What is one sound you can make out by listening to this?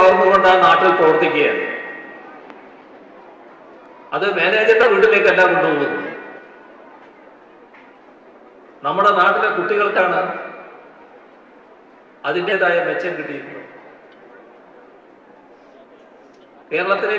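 A middle-aged man speaks forcefully into a microphone, his voice echoing over loudspeakers outdoors.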